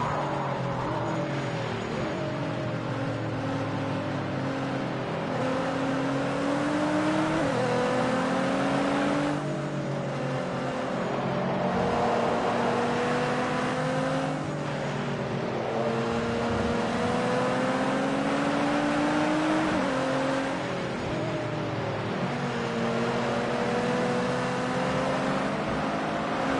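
A racing car engine revs hard, rising in pitch and dropping with each gear change.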